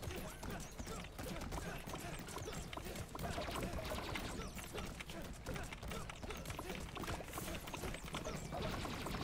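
Punches and blasts thud and crackle rapidly in a video game.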